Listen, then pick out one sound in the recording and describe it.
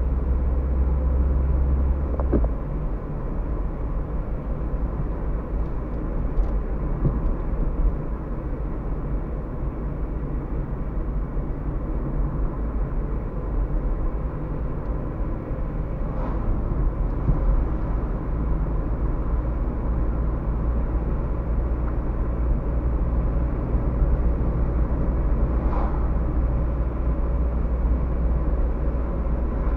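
A car engine hums and tyres rumble steadily on the road, heard from inside the car.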